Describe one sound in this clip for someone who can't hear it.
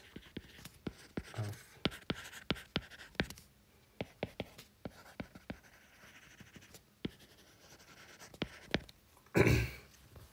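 A stylus taps and scratches on a tablet's glass.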